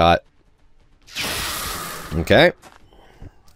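A laser rifle fires a sustained, crackling burst.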